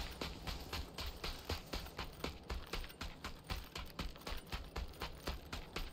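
Quick footsteps crunch on dirt at a steady pace.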